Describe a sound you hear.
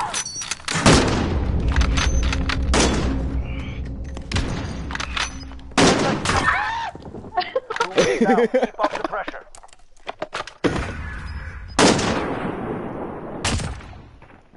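A sniper rifle fires loud, booming shots that echo.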